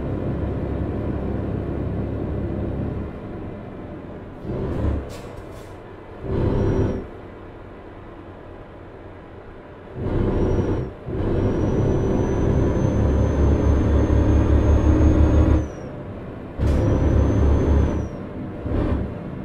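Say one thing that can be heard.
A truck engine hums and rumbles steadily.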